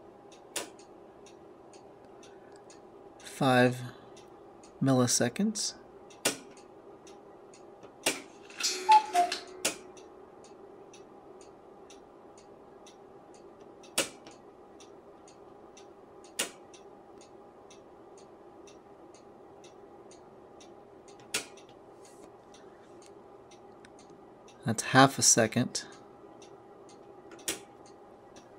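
A knob clicks as a hand turns it.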